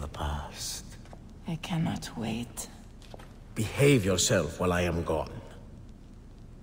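A young woman speaks in a low, eager voice.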